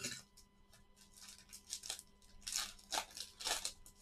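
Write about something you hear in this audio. Foil wrappers crinkle as they are torn open.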